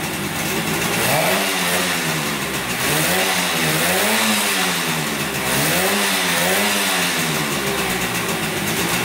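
A motorcycle engine revs up and down several times.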